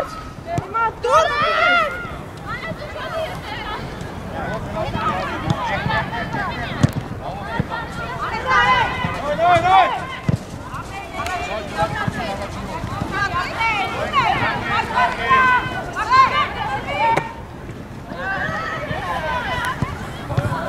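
Young women shout and call to each other outdoors at a distance.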